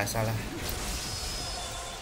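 Blades slice through flesh with a wet splatter.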